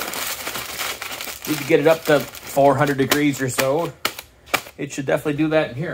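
Foil crinkles in a man's hands.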